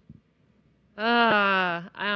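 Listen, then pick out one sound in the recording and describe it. A woman speaks into a microphone, heard over a loudspeaker.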